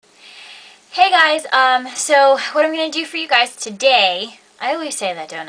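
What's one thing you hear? A young woman talks cheerfully and with animation close to the microphone.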